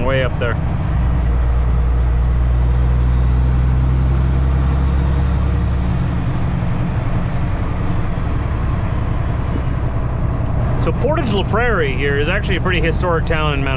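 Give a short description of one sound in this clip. Tyres roar on a paved road.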